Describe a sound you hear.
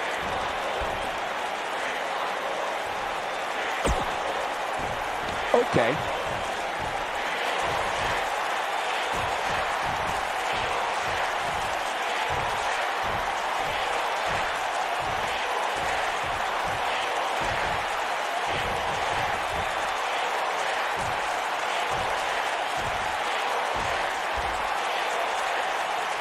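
A crowd murmurs and cheers steadily in a large arena.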